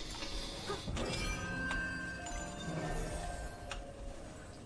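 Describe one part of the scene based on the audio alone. A magical chime rings out and shimmers.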